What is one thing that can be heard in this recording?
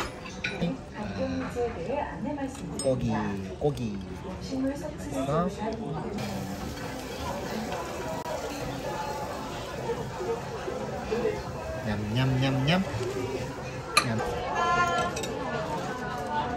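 A baby smacks its lips while eating close by.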